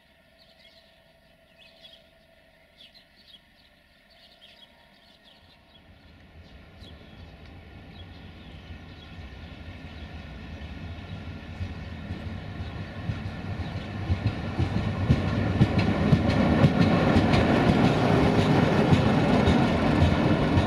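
A diesel locomotive engine rumbles, growing louder as it approaches and passes close by.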